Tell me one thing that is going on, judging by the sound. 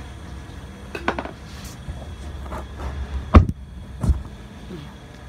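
A phone knocks and bumps against something nearby.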